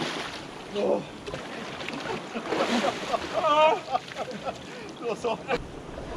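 Water splashes as men wade and dip into a lake.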